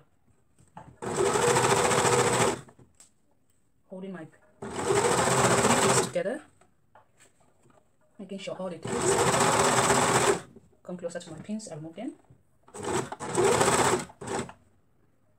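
A sewing machine whirs in short, fast bursts, stopping between them.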